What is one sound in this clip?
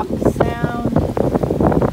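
Waves splash against the hull of a sailing boat.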